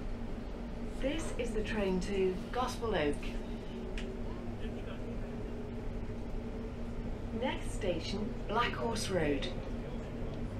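A man talks into a phone nearby.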